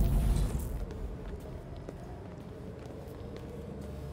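Footsteps echo on a hard floor.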